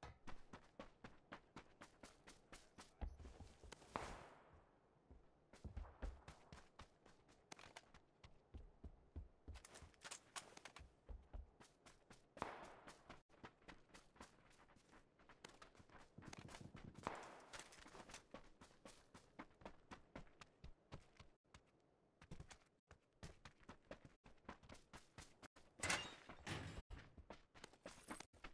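Footsteps run quickly over ground and wooden boards.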